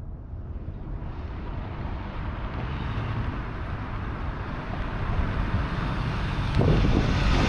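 A pickup truck engine rumbles as the truck drives closer, growing louder.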